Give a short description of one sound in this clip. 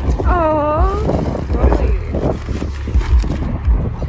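Cardboard rips and tears.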